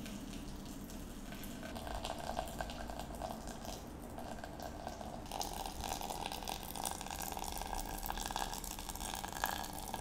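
Water pours from a kettle into a pot.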